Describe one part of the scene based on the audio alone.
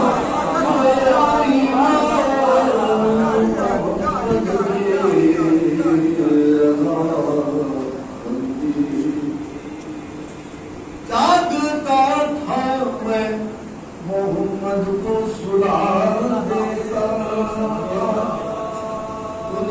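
A middle-aged man sings a slow, mournful chant through a microphone, echoing in a hall.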